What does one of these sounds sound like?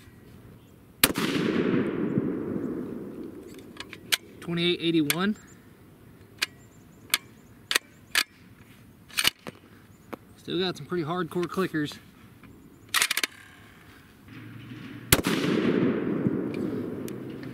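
A rifle shot cracks loudly outdoors and echoes away.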